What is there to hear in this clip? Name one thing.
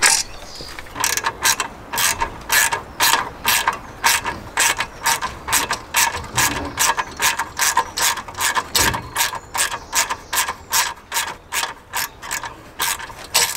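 A ratchet wrench clicks rapidly and steadily.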